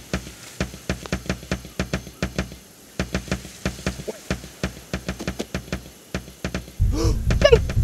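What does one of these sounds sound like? Footsteps tap quickly and evenly on a wooden floor.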